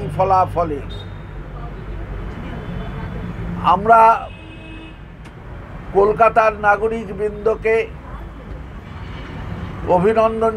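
An elderly man speaks with animation into nearby microphones, in short bursts with pauses.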